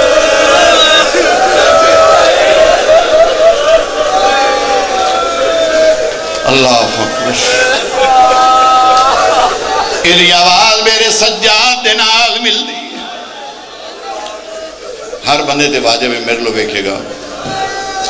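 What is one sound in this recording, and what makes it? A middle-aged man chants and speaks with passion through a microphone and loudspeakers.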